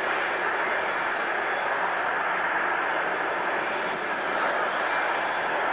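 The turbofan engines of a four-engine military jet transport roar and whine as it taxis.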